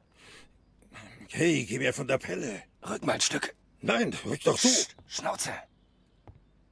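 A man speaks tensely and close, in a low voice.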